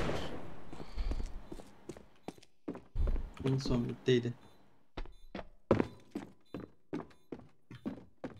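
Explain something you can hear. Footsteps patter on a hard floor.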